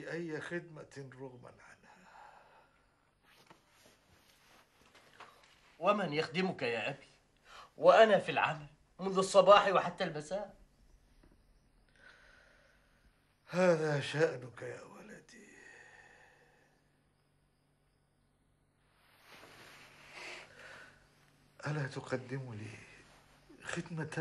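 A man speaks softly and with concern, close by.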